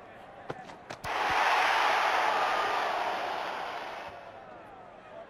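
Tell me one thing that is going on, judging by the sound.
A crowd bursts into a loud cheer.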